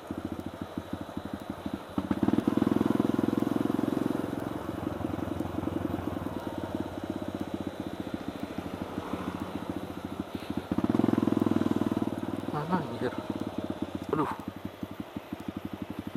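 A motorcycle engine thumps close by, revving up and easing off.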